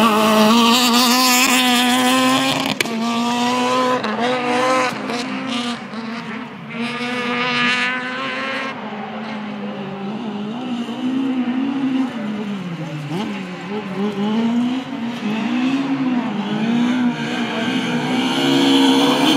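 A rally car engine roars nearby, revving up and down.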